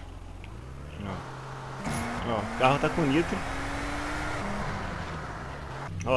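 A car engine revs.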